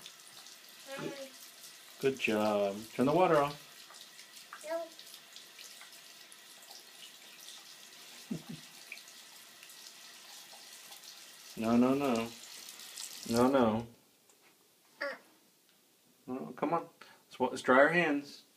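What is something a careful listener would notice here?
A toddler babbles and sings out in a high voice close by.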